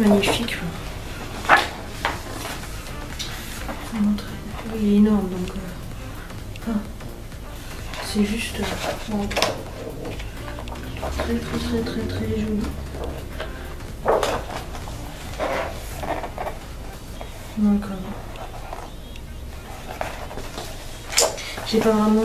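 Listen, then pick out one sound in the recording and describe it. Pages of a large book rustle as they turn.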